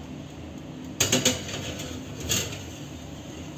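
A glass dish clinks onto a metal oven rack.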